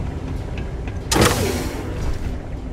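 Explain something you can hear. A heavy sliding door whooshes open.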